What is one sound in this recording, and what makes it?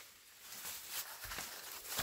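Dry plants rustle as a person pushes through them.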